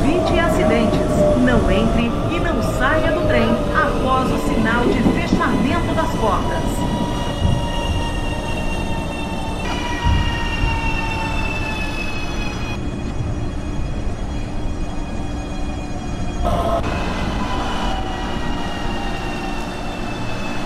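Traction motors of an electric train whine, falling in pitch as the train slows.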